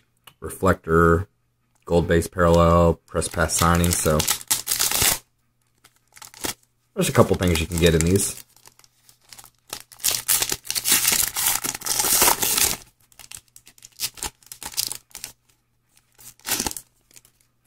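A foil wrapper crinkles and rustles as it is handled.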